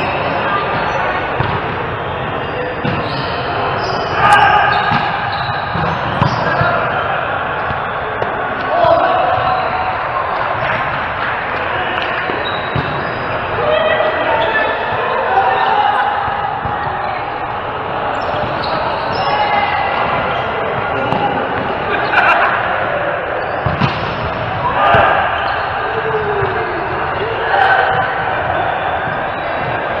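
Men call out to each other in a large echoing hall.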